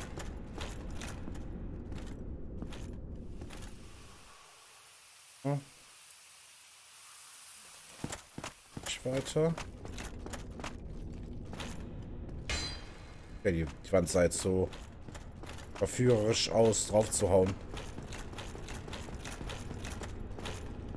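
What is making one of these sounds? Heavy armoured footsteps clank steadily on stone.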